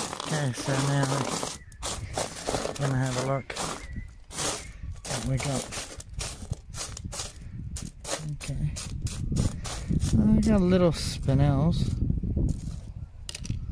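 Pebbles clatter and rattle as hands stir them.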